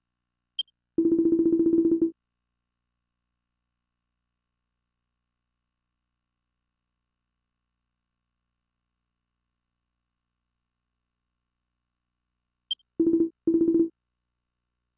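Rapid electronic beeps chatter in quick bursts.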